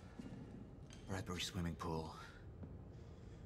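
A man speaks calmly and quietly, close by.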